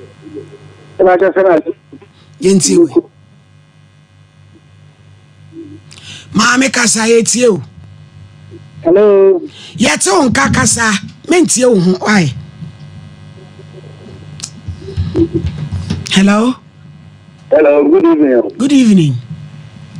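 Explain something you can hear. A woman speaks with animation into a microphone, in bursts with pauses.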